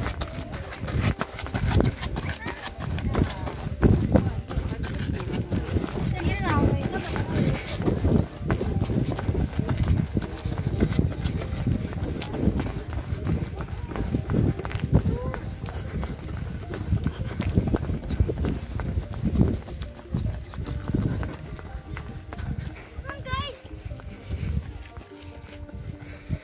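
Running footsteps slap quickly on pavement.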